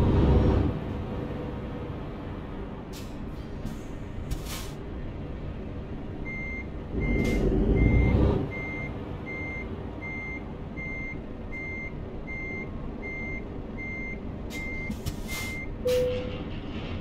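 A heavy diesel truck engine rumbles, heard from inside the cab.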